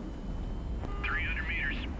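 A cockpit warning tone beeps.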